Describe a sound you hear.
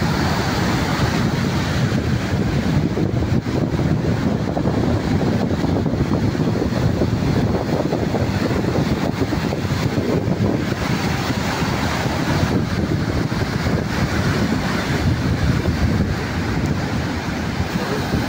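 Waves crash and wash up onto a beach.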